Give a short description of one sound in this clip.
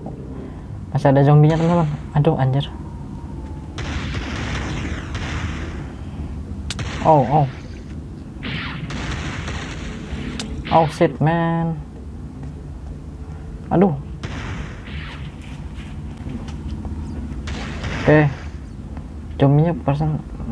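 Zombie creatures groan in low, moaning bursts.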